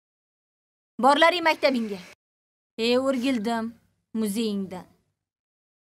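A young girl speaks softly.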